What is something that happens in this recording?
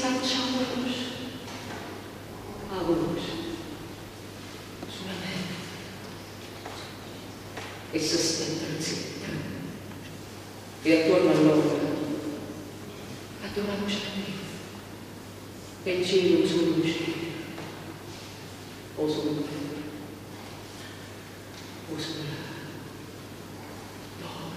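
A woman speaks slowly and expressively through a microphone in a reverberant hall, with pauses between phrases.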